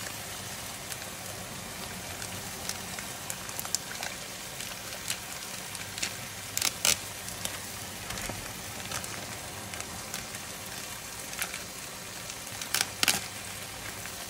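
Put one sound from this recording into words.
A plastic packet crinkles and rustles in hands.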